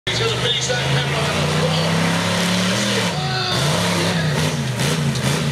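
A monster truck engine roars and revs loudly.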